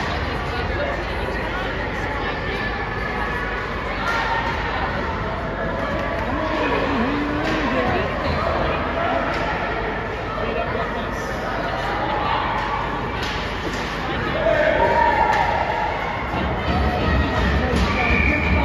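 Hockey sticks clack against the puck now and then.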